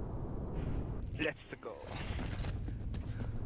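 Heavy armoured footsteps thud quickly on a hard floor.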